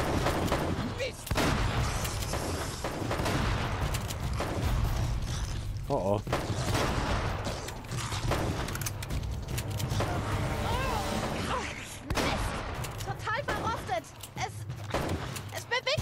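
Gunshots ring out rapidly in an echoing space.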